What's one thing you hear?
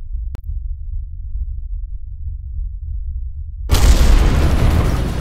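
A spacecraft's engines hum with a low, steady rumble.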